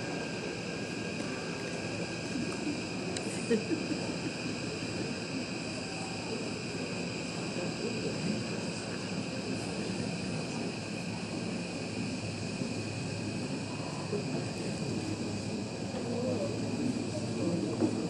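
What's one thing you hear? Young men and women murmur and talk quietly nearby.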